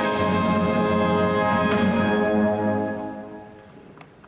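A brass band plays a sustained chord in a large hall.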